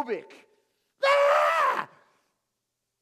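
A middle-aged man exclaims loudly.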